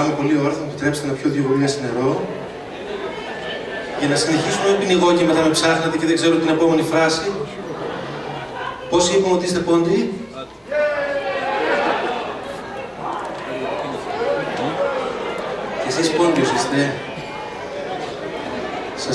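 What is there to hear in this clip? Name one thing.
A man sings into a microphone, heard through loudspeakers in a large hall.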